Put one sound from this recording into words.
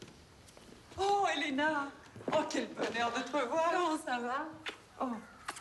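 A young woman greets others with animated, excited exclamations.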